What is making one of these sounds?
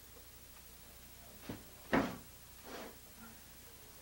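A window sash slides and thumps.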